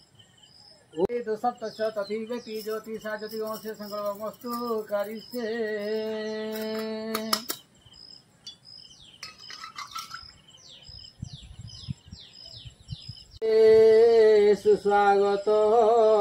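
A man chants nearby in a steady, drawn-out voice.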